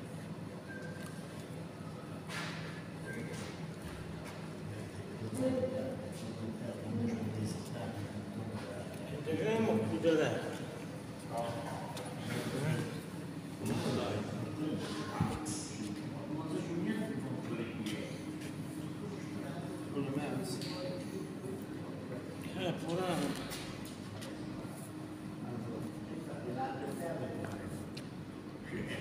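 Elderly men talk in a large echoing hall.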